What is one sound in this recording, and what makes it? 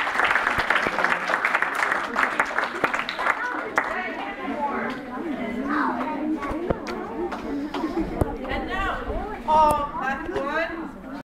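A crowd of children chatters loudly in an echoing hall.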